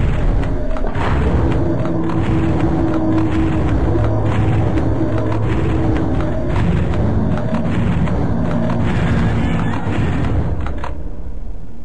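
A large mechanical creature stomps heavily with clanking steps.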